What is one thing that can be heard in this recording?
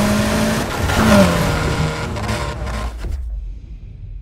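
An engine drops in pitch as a car slows.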